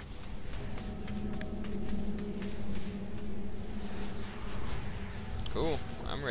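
A magical portal hums with a low, steady drone.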